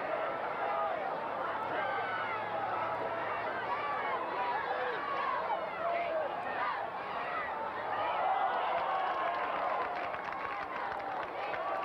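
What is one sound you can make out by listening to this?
A large crowd cheers and chatters outdoors.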